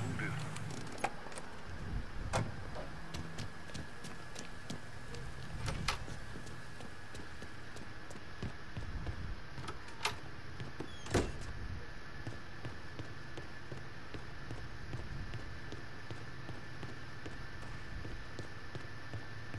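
Footsteps thud on hard ground and wooden stairs.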